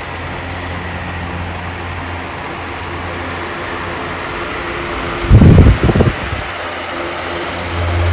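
An electric fan hums and whirs steadily.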